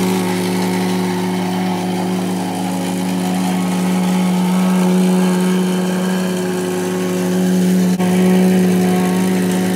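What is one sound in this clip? A plate compactor engine drones loudly and steadily, close by.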